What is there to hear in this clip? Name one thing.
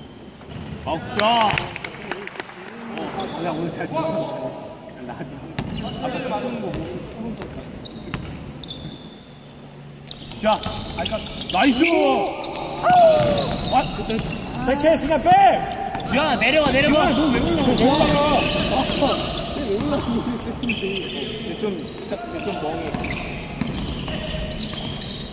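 Young men shout and call out to each other.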